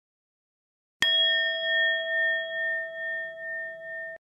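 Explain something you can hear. A small bell chimes once and rings out, slowly fading.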